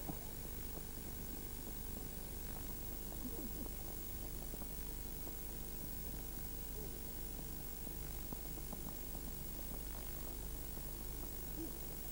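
Horses' hooves clop on a paved road.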